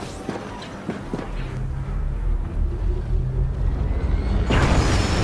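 A starfighter's engines hum and rise loudly.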